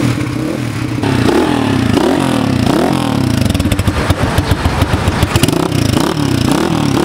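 A motorcycle engine revs up and down again and again.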